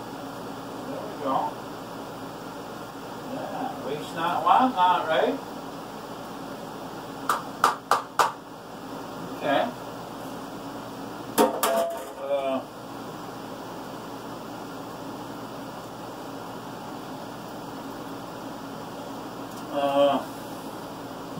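An elderly man speaks in short bursts in a room.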